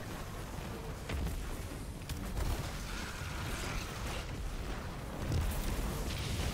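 Explosions boom and crackle in a video game.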